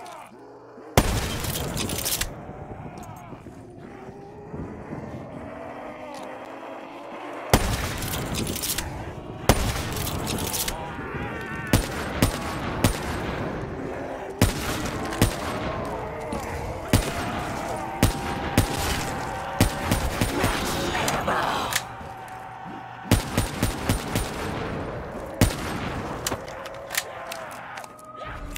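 Rifle shots crack loudly, one at a time.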